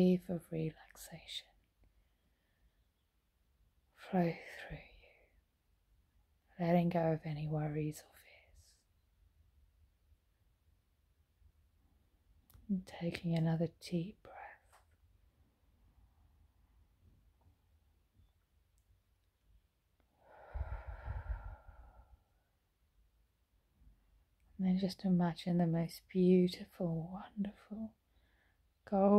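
A middle-aged woman speaks calmly and slowly close to the microphone, with long pauses.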